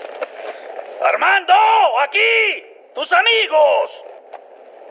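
A man calls out loudly with animation.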